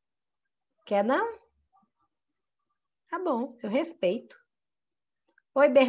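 A woman speaks clearly and with animation over an online call.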